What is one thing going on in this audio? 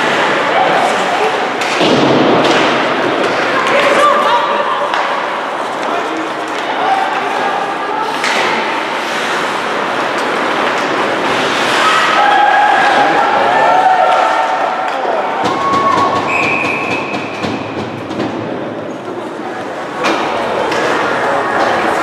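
Hockey sticks clack sharply against a puck now and then.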